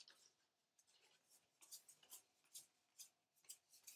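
Trading cards rustle as they are shuffled by hand.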